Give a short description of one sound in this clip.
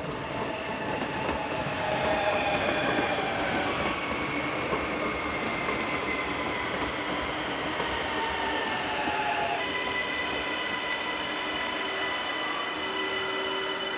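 Train wheels squeal on a curved track.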